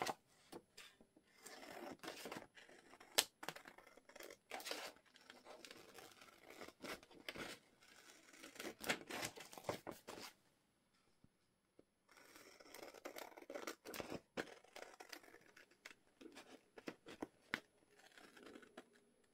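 Paper rustles and crackles as it is handled.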